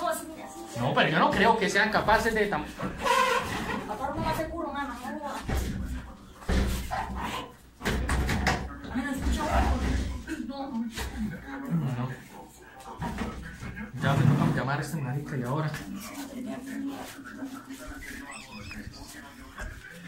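A woman and a man talk with animation close by.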